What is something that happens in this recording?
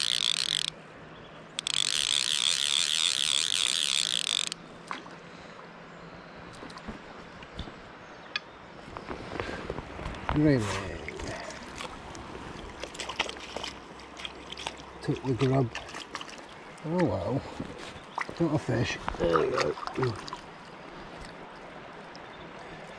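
A river flows gently nearby.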